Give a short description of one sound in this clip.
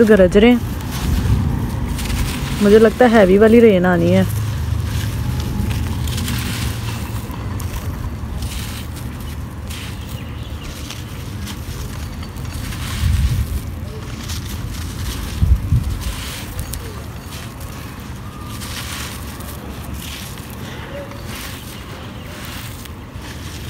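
Dry soil crumbles and trickles down.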